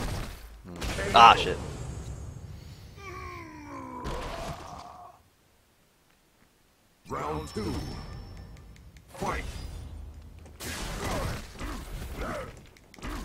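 A fighter grunts and groans in a video game.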